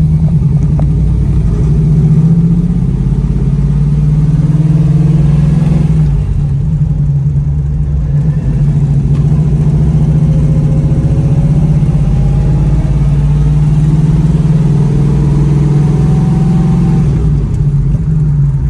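Tyres hum on a road.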